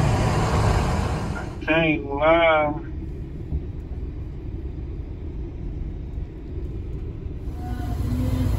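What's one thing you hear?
A V8 full-size SUV rumbles as it drives.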